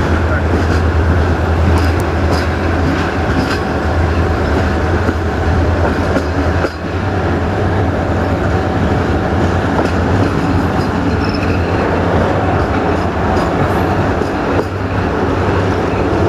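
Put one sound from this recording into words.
Wind rushes past a train's open window.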